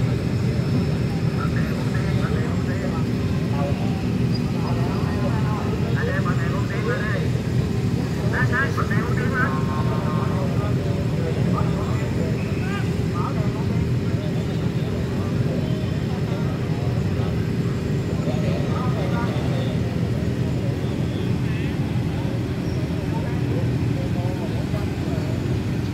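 A crowd of people chatters in the distance, outdoors.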